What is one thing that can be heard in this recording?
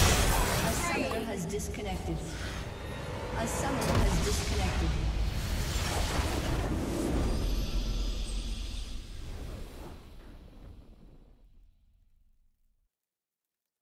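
Triumphant game music swells and fades out.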